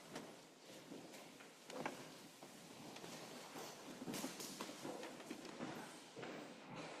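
Footsteps shuffle and knock on a wooden floor.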